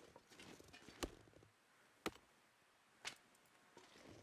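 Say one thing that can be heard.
A sapling snaps as it is pulled up.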